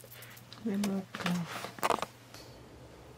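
A young woman vocalizes loudly close by.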